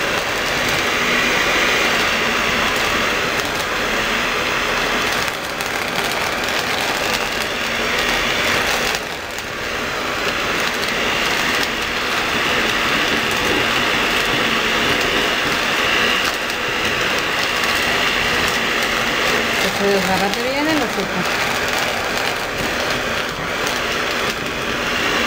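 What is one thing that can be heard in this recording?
An electric hand mixer whirs steadily.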